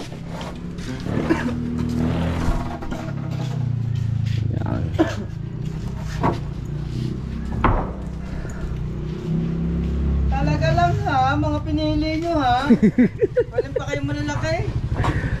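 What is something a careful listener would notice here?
Wooden planks knock and clatter as men handle them.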